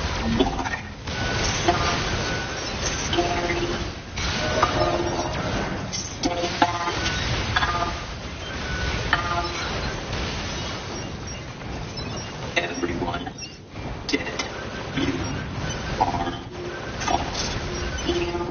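Metal blades clash and clang.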